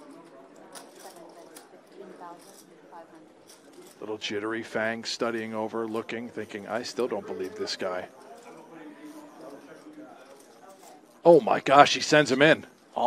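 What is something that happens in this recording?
Poker chips click together.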